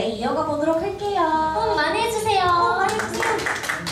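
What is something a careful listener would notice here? A young woman sings through a loudspeaker.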